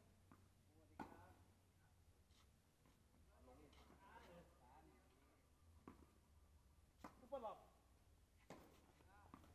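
Tennis balls are struck with rackets in sharp pops.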